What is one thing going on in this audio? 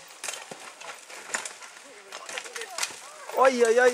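A bicycle crashes to the ground with a clatter.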